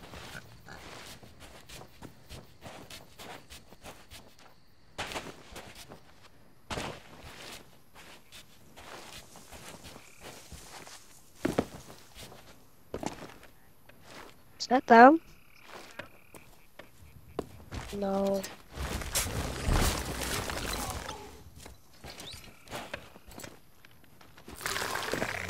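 Footsteps tread steadily over dirt and grass.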